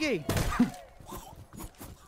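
A hammer thuds against a creature's flesh.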